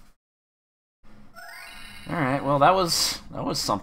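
A short electronic jingle plays.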